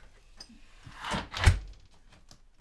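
A door shuts with a thud.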